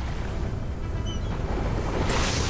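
A short chime sounds as an item is picked up.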